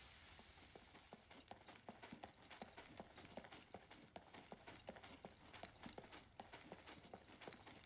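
Footsteps tread along a road at a steady pace.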